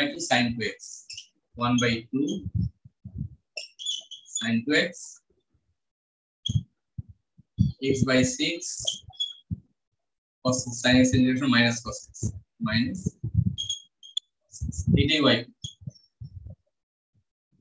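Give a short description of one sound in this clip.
A man explains as he lectures.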